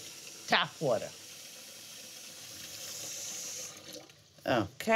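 Tap water runs and splashes into a pot of liquid.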